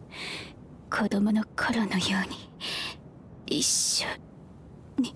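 A young woman speaks weakly and faintly.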